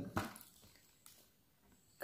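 A small plastic part clicks into place.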